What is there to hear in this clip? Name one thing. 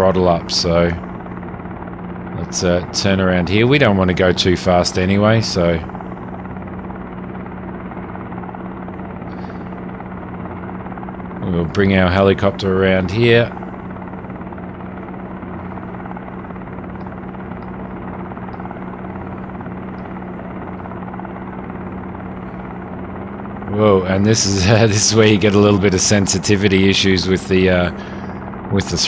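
A helicopter engine drones steadily with rotor blades thumping.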